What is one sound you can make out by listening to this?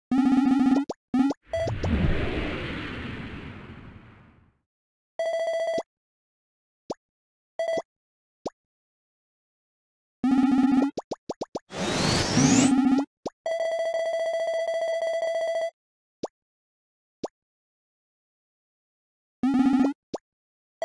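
Short electronic game beeps and chimes sound now and then.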